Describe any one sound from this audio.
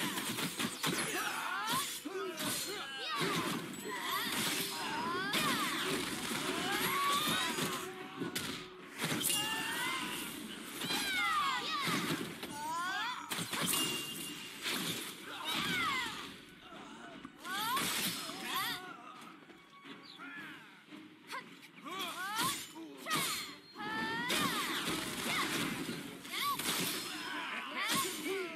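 Sword blows strike with sharp impacts.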